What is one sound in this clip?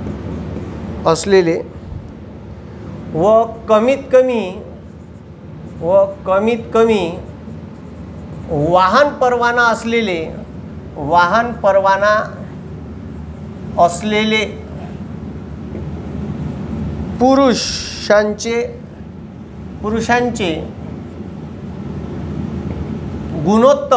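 A man speaks calmly, as if explaining, close by.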